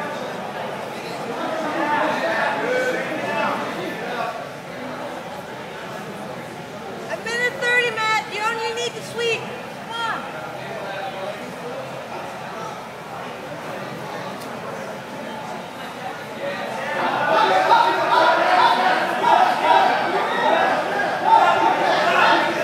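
Men talk and call out nearby.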